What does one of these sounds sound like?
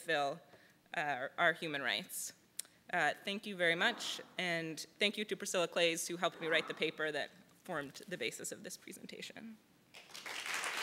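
A young woman speaks into a microphone, amplified in a large room.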